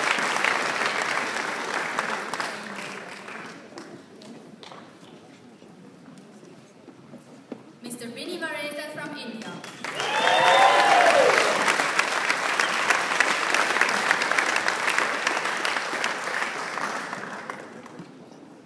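An audience applauds loudly in a large echoing hall.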